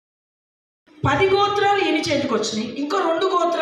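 A woman speaks with animation through a microphone and loudspeaker.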